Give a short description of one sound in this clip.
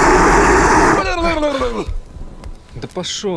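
A man growls, mimicking a monster.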